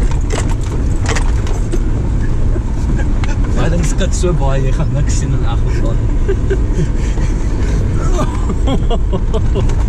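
An elderly man talks and laughs loudly nearby.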